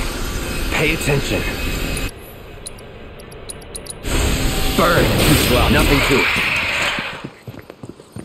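Magic blasts burst and whoosh.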